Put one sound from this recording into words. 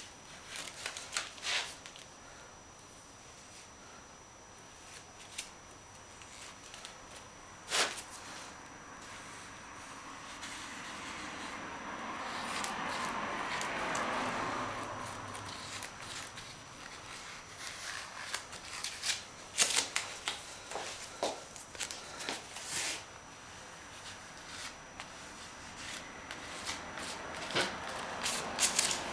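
A hand dabs and rubs a paper surface with a soft rustle.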